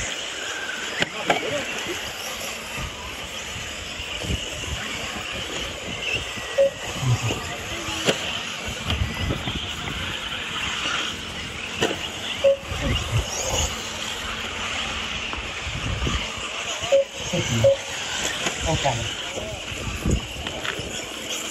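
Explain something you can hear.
Model car tyres scrabble and bump over rough dirt.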